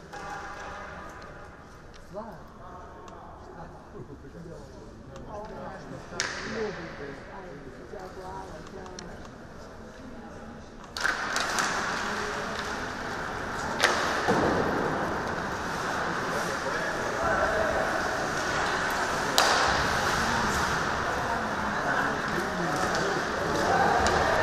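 Skates scrape and hiss on ice.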